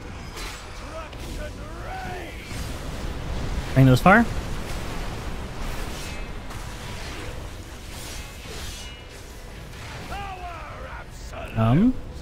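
Magic spells whoosh and crackle in a fierce battle.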